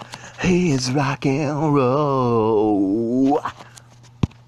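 A man sings loudly in a long, wavering tone.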